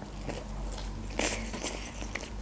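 A woman bites into a wrap with a soft crunch close to a microphone.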